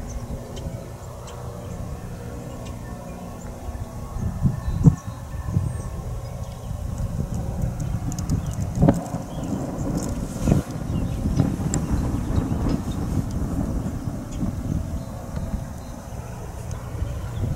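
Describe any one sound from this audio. A steam locomotive chuffs heavily as it draws closer.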